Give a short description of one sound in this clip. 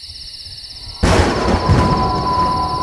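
Thunder cracks loudly and rumbles.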